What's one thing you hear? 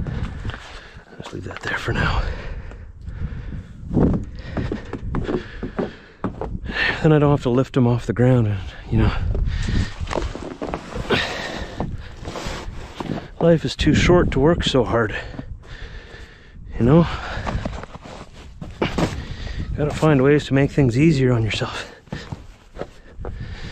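Packed snow crunches and scrapes under gloved hands.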